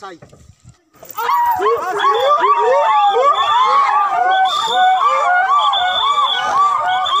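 Several men shout loudly and excitedly while running.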